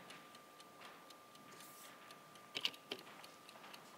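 A chess piece clacks down on a board.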